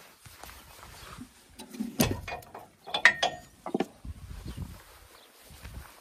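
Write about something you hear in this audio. Metal parts of a boat trailer clank and click as they are handled.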